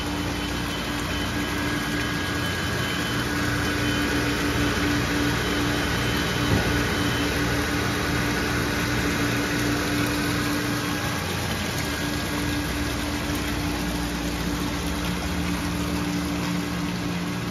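Water splashes and churns into a tank.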